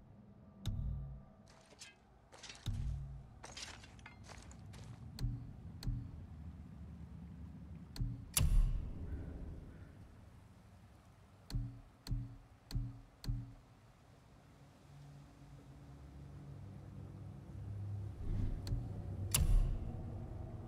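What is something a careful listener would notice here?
Short menu clicks and whooshes sound as options change.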